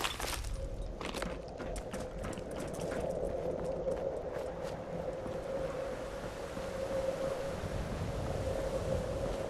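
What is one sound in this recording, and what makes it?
Footsteps crunch over gravel and rubble.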